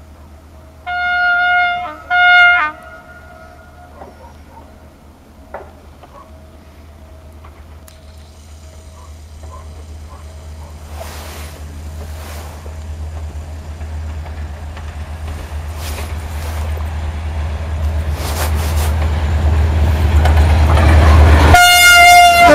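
A diesel locomotive engine rumbles, growing louder as it approaches.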